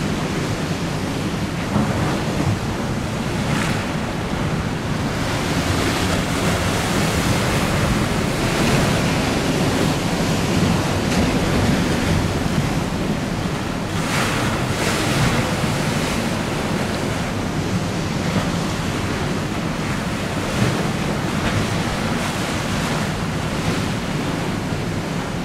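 Choppy water splashes and laps.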